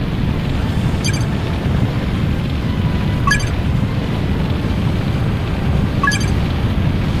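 A short electronic menu chime rings as message boxes open.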